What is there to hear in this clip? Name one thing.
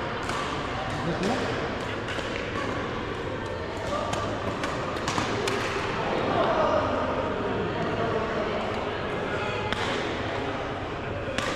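Young men and women chatter and call out in the distance.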